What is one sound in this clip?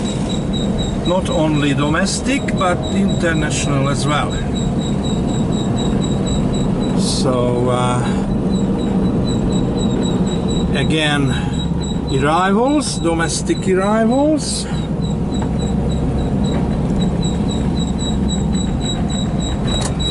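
A car engine hums steadily as tyres roll along a road.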